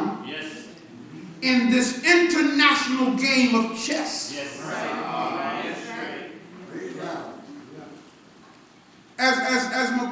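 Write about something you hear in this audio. A man preaches with animation through a microphone in an echoing room.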